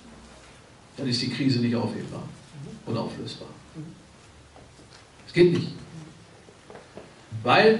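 An elderly man speaks with emphasis into a microphone, in bursts with pauses.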